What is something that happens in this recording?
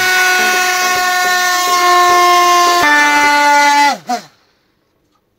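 A small electric motor whirs at a high pitch, then winds down and stops.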